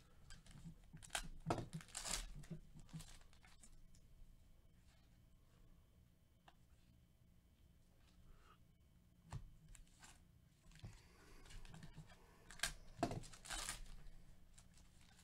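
A foil wrapper crinkles and tears close by.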